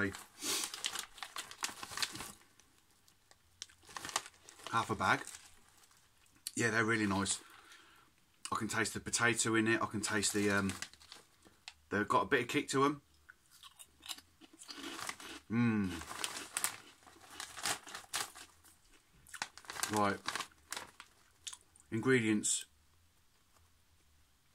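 A crisp packet crinkles.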